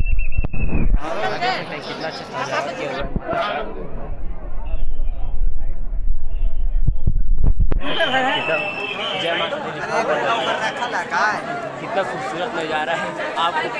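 A crowd chatters in a busy, echoing space.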